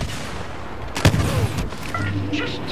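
A rocket explodes with a loud boom.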